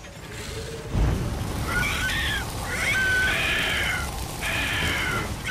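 A large creature blasts out a roaring gust of fire.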